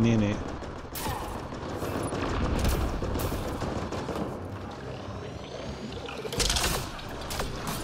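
Guns fire in short, loud bursts.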